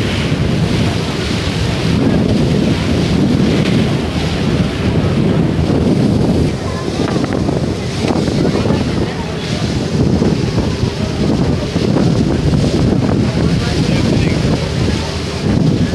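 Water splashes and churns against a moving boat's hull.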